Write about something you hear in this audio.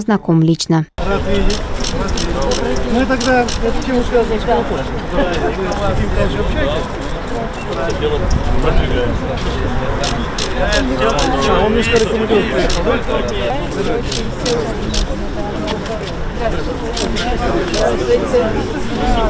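Several people talk at once nearby, outdoors.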